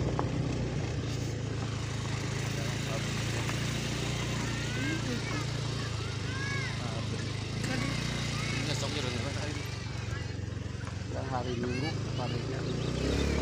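A small truck engine idles nearby with a steady low hum.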